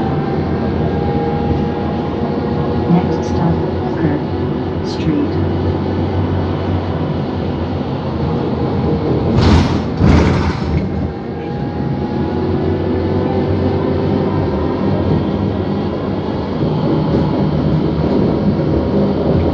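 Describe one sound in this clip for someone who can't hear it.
A bus engine hums steadily while riding along a road.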